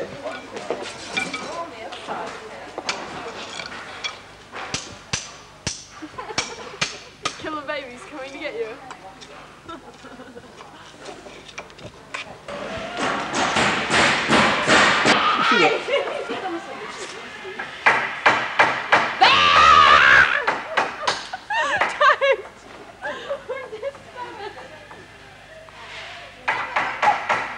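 Several people talk and chatter nearby.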